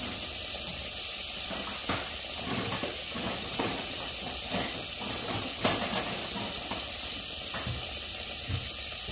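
Milk bubbles and simmers steadily in a pot.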